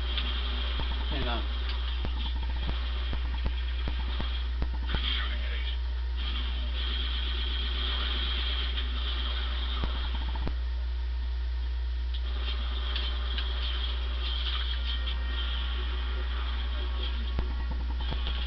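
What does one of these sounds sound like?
Gunfire from a video game crackles through a television speaker.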